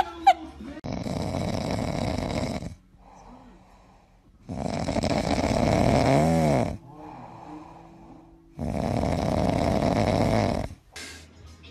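A dog howls in long drawn-out bursts.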